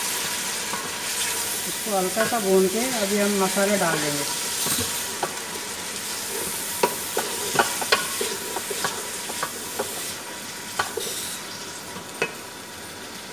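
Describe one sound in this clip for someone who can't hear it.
A wooden spoon scrapes and knocks against a metal pot.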